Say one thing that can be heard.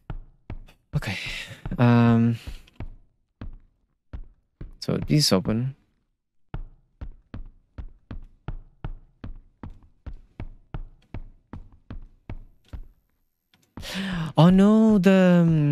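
A young man speaks into a microphone with animation, in short bursts.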